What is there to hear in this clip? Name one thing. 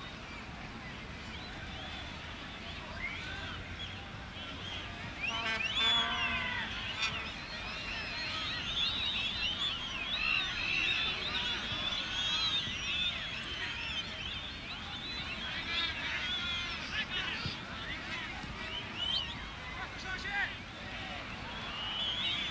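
A large stadium crowd whistles and cheers, echoing outdoors.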